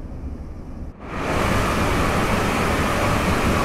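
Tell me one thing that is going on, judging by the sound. A passing train roars loudly close by.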